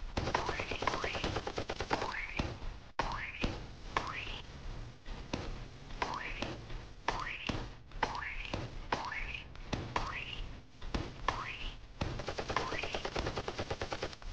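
Rockets fire with sharp whooshing blasts.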